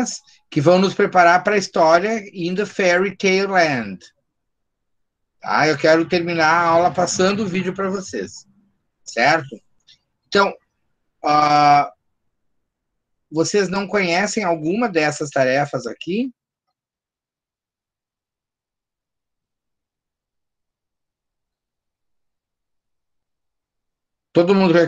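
A middle-aged man speaks calmly over an online call, with pauses.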